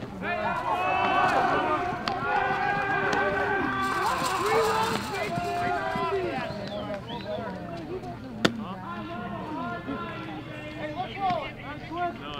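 Young men talk and call out nearby outdoors.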